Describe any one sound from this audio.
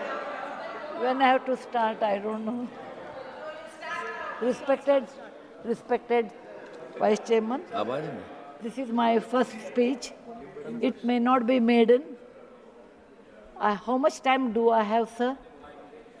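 An elderly woman speaks calmly into a microphone in a large hall.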